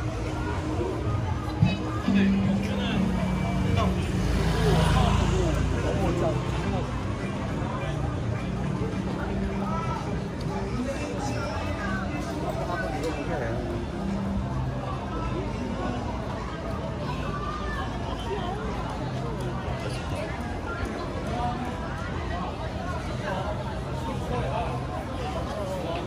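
A crowd of people chatters throughout in a busy outdoor street.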